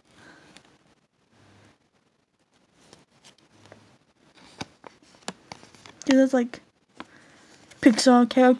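Cardboard taps and crinkles under fingers.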